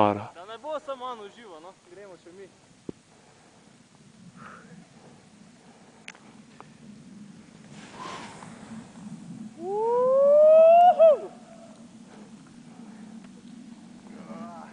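A snowboard hisses across powder snow.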